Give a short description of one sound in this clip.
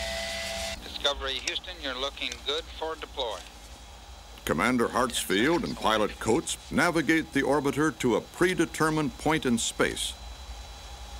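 A man speaks calmly over a radio.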